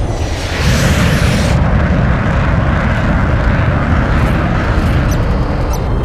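A rapid cannon fires in bursts.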